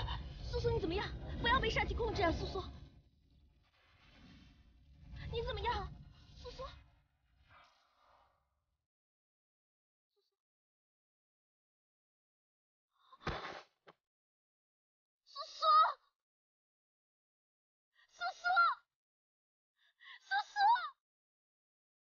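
A young woman calls out in distress, close by.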